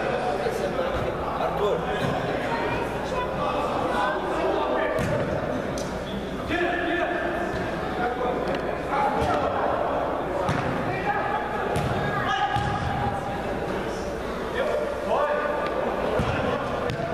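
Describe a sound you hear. Children shout and call out across a large echoing indoor hall.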